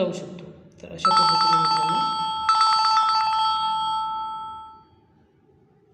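A phone rings with a repeating electronic ringtone.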